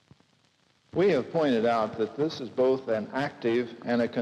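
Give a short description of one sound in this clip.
A man speaks into a microphone with animation, heard through a loudspeaker.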